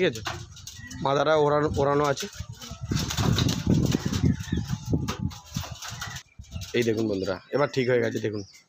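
A pigeon coos in low, throaty bursts.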